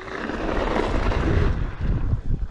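Electric scooter tyres hiss along a concrete path.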